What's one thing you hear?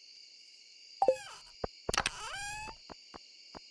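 A menu closes and reopens with a whooshing chime.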